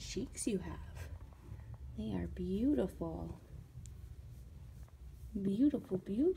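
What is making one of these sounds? A cat purrs softly close by.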